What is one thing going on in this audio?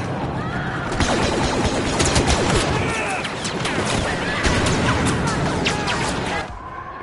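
Blaster rifles fire in rapid bursts with sharp zapping shots.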